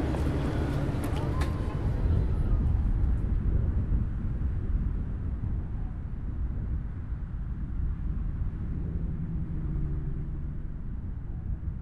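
Choppy waves slosh and splash against each other.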